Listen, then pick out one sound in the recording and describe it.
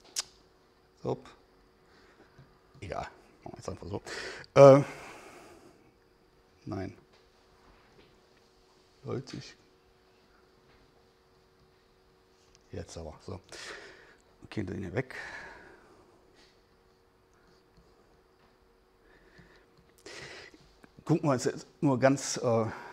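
A middle-aged man speaks calmly, with pauses between phrases.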